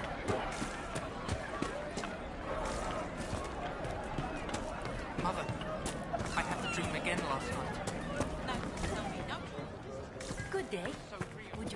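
Footsteps thud quickly on dirt and wooden planks.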